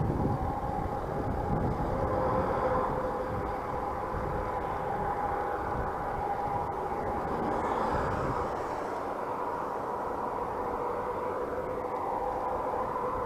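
Bicycle tyres hum along a paved road.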